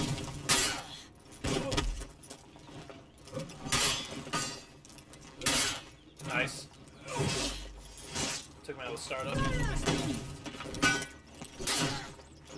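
Heavy weapons clash and slash in a sword fight.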